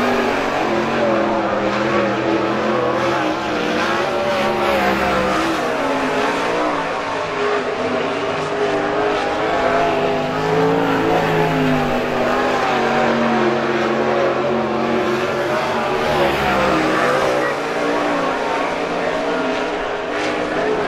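A racing car engine roars loudly, rising and falling in pitch.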